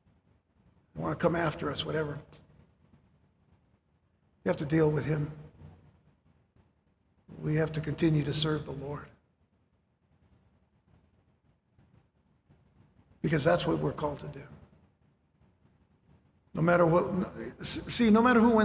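A middle-aged man speaks through a microphone in short, measured phrases with pauses.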